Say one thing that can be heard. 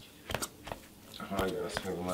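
Hands knead dough in a plastic bowl.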